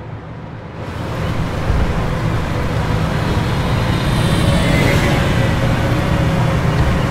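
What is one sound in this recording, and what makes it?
A heavy armoured vehicle's engine rumbles loudly as it drives.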